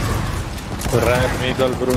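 A gun fires in bursts.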